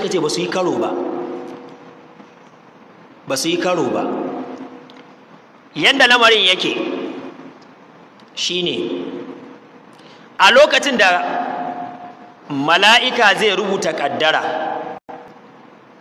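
A man speaks with animation into a microphone in an echoing room, in short bursts with pauses.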